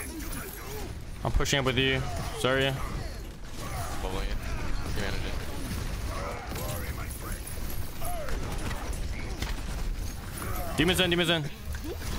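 A young man talks with animation into a close microphone, now and then shouting excitedly.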